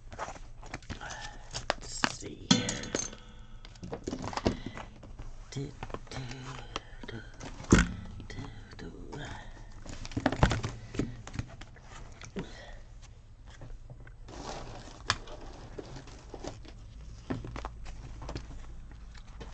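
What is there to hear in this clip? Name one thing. Plastic notebook covers rustle and tap as they are handled.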